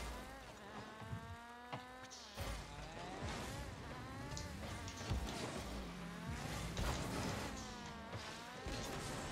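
A game car's engine revs and whines, rising and falling in pitch.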